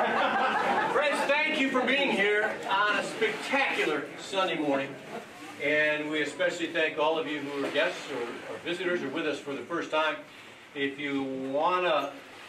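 A man speaks calmly to a gathering through a microphone.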